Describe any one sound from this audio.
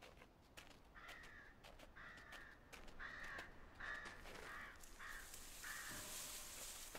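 A small animal's paws patter quickly over the ground.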